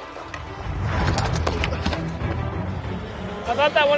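Hockey skates scrape across ice.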